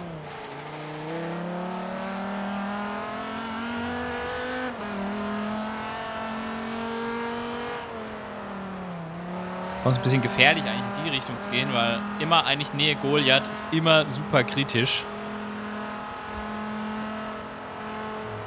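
A car engine roars at high speed, its pitch rising and falling as gears change.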